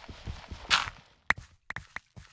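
Stone blocks crack and crumble as they are broken.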